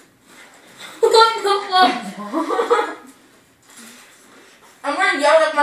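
A young woman makes loud, drawn-out voice sounds close by.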